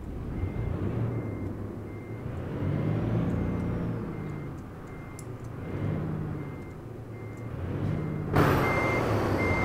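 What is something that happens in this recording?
A reversing alarm beeps steadily at an even pace.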